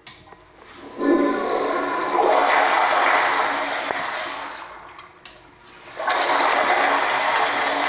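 A toilet flushes with loud rushing, swirling water.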